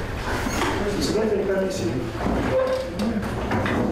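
An elderly man speaks calmly to a room.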